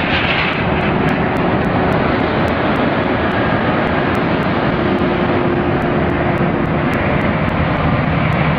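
A heavy truck engine rumbles loudly close by.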